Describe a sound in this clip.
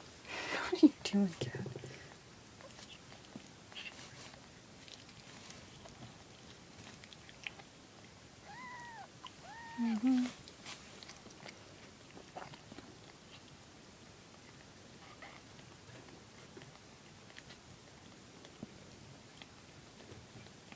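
A cat licks and grooms with soft wet sounds.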